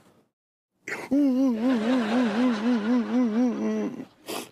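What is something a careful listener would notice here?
A middle-aged man laughs in a muffled, shaking voice.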